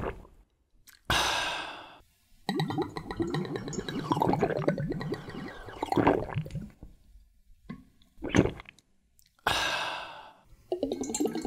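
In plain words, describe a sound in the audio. A man speaks briefly and with animation, close by.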